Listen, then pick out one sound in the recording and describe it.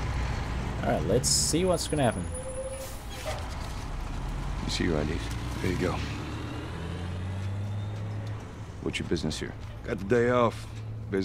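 A man asks questions firmly.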